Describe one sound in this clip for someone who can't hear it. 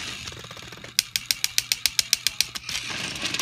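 Toy train wheels click steadily over the track joints.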